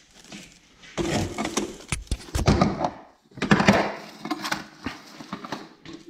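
Objects clatter on a shelf as someone rummages.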